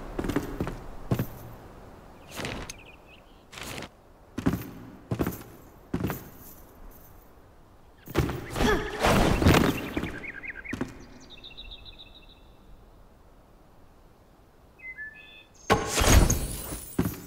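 Short game interface clicks and blips sound now and then.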